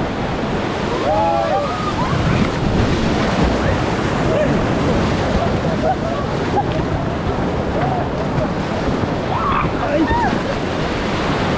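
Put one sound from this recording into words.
Young men and women on a raft shout and whoop excitedly nearby.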